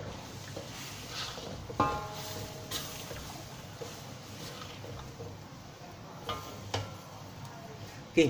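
A spatula scrapes and stirs in a metal pan.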